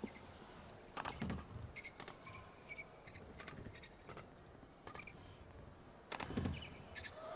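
Rackets smack a shuttlecock back and forth.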